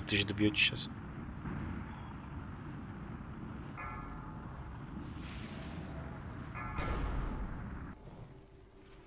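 Spells whoosh and crackle in a fantasy battle.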